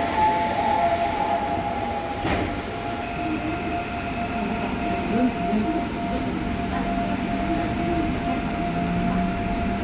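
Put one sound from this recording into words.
A subway train rumbles and hums steadily along the tracks.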